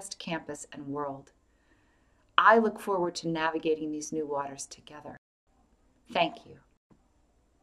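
A middle-aged woman speaks calmly and clearly into a nearby microphone.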